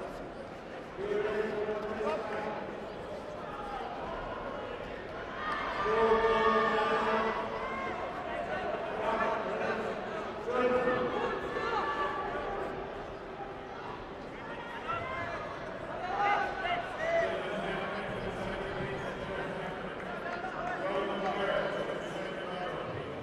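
Spectators cheer and shout in bursts.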